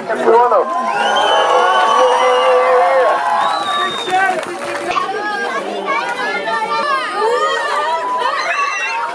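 A large crowd of children cheers and shouts outdoors.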